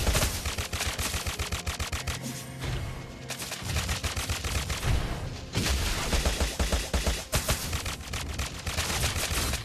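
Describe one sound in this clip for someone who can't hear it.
Spells crackle and burst in quick, loud blasts.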